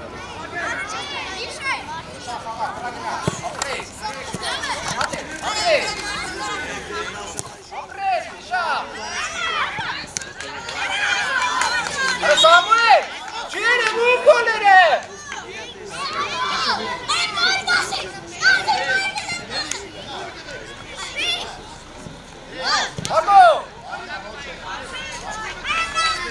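Children shout and call out across an open playing field.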